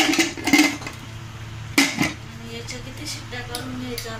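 A metal pot handle clicks shut.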